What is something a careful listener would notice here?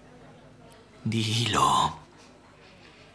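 A woman speaks softly, close by, on the verge of tears.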